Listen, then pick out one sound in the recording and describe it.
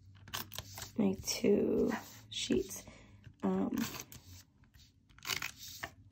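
A tape roller clicks and rolls along paper.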